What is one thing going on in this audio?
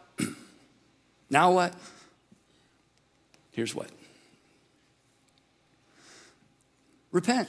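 A middle-aged man speaks with emphasis through a microphone, pausing between short phrases.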